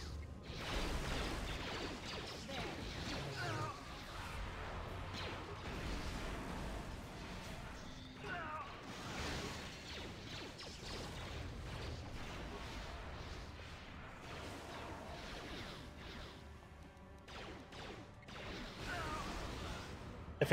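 Energy blasts crackle and burst.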